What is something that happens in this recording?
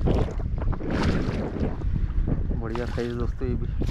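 Water splashes as a net scoops a fish.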